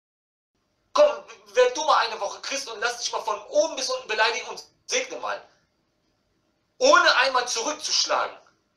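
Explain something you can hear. A man speaks with animation through a phone's loudspeaker.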